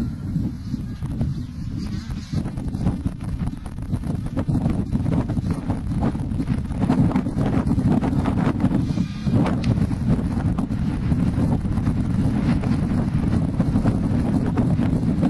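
A jet plane roars overhead, growing louder as it passes close.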